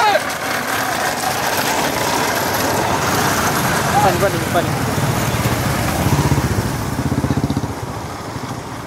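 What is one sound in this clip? Motorcycle engines rumble loudly as they ride past close by.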